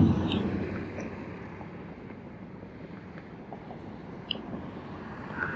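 Wind rumbles past while riding, fading as the ride slows to a stop.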